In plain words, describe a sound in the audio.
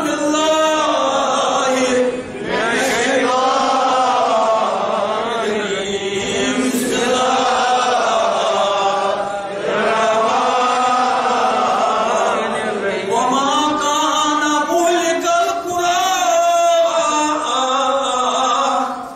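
An elderly man preaches passionately into a microphone, his voice loud and sometimes chanting.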